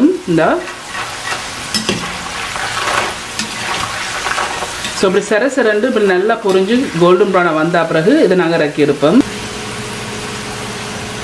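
Oil sizzles and crackles steadily as food fries in a pan.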